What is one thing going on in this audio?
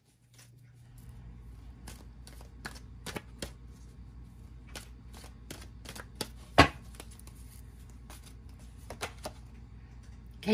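Playing cards riffle and snap as a deck is shuffled.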